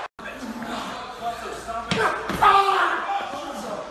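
A body slams hard onto the floor.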